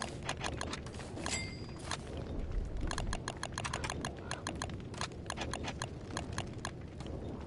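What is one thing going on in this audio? Soft menu clicks tick rapidly.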